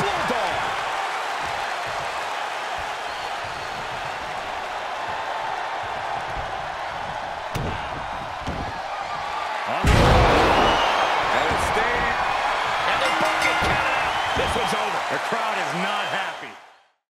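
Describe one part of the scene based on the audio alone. A large crowd cheers loudly, swelling to a roar.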